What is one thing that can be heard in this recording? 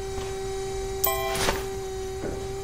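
A garbage bag thuds into a metal skip.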